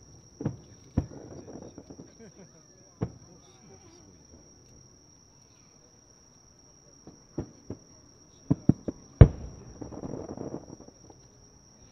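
Fireworks crackle and sizzle after the bursts.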